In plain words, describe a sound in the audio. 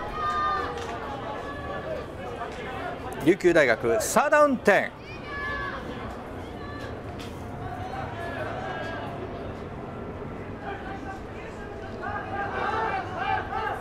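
A crowd of young men shouts and cheers outdoors at a distance.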